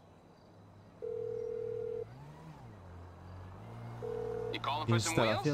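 A phone call rings with long, steady beeps.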